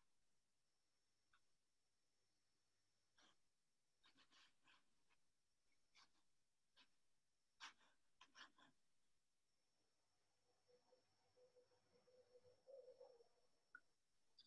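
A brush taps and scratches softly on paper.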